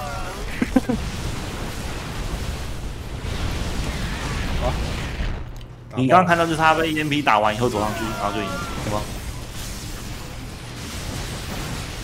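Laser weapons fire and small explosions crackle in a battle.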